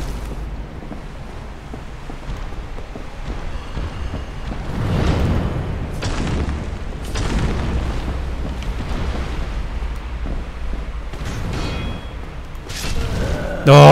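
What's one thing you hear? A young man talks casually through a microphone.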